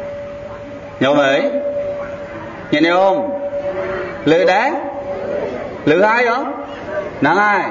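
A young man sings in short rising and falling phrases.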